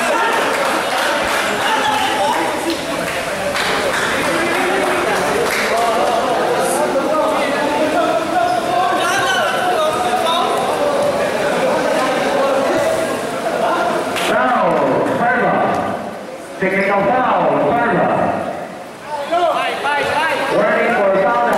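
A crowd of spectators chatters and shouts in an echoing indoor court.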